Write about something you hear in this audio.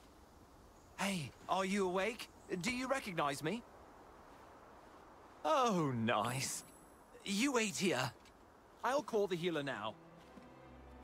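A young man speaks with animation, close by.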